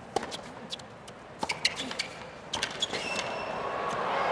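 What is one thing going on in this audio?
Tennis shoes squeak on a hard court.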